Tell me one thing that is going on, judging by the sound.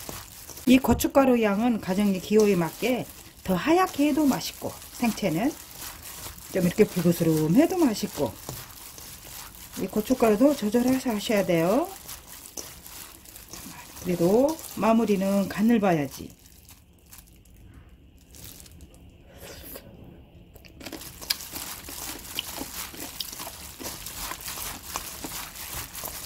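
Wet vegetables squish and rustle as gloved hands toss and mix them.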